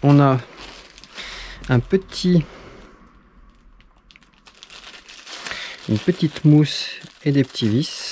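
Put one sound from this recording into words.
A small plastic bag crinkles.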